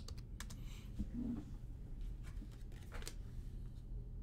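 Trading cards rustle and click softly as hands handle them.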